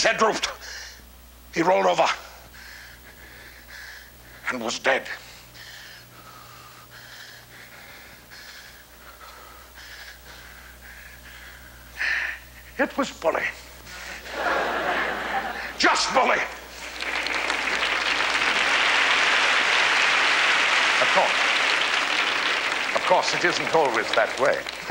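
An elderly man speaks loudly and dramatically on a stage.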